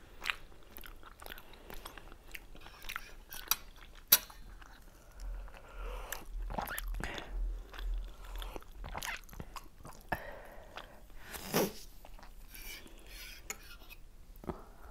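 Two women chew food with soft wet mouth sounds close to a microphone.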